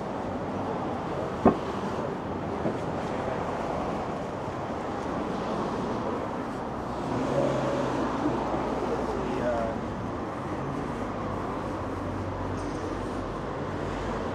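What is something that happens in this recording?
Traffic hums steadily along a nearby street.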